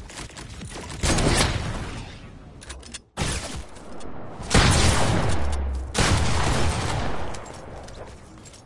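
A loud burst of impact and explosion sounds bursts out and fades.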